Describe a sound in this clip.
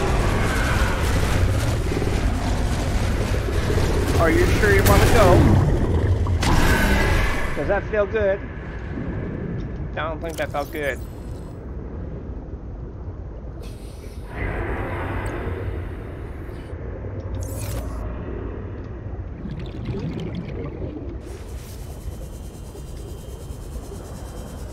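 A small underwater motor hums steadily.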